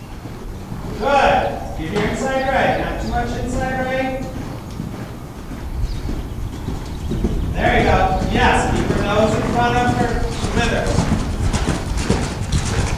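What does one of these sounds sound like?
A man calls out instructions loudly.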